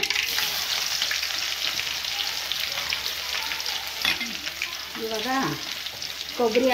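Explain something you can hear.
Onions sizzle and crackle in hot oil.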